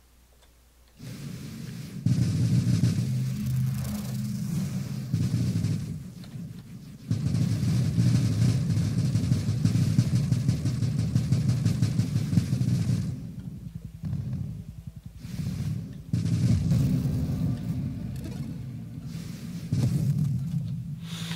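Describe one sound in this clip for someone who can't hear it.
Rapid electronic laser shots fire in bursts.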